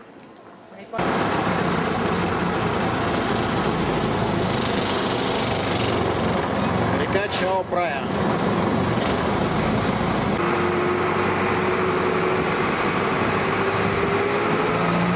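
A boat engine rumbles steadily.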